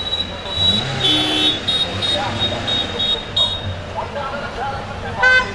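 Car engines rumble as traffic moves slowly past.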